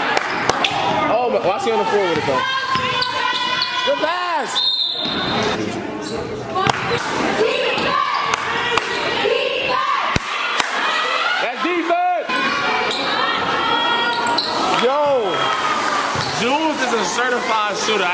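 Sneakers squeak sharply on a hard floor in a large echoing gym.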